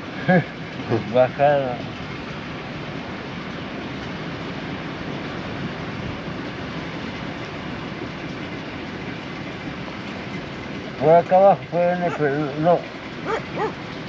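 An elderly man speaks calmly nearby.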